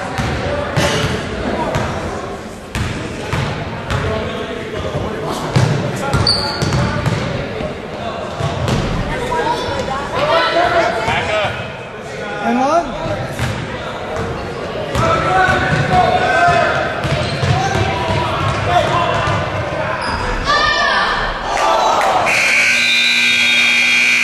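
Sneakers squeak on the hardwood court.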